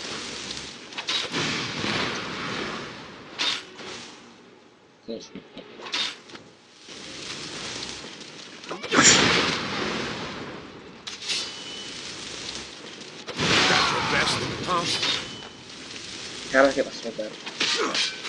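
A spell of fire roars and crackles in bursts.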